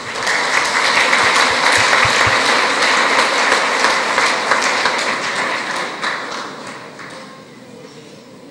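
An audience applauds loudly in a large hall and the applause slowly fades.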